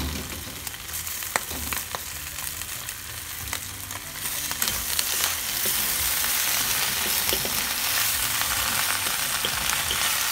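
Vegetables sizzle in hot oil, growing louder partway through.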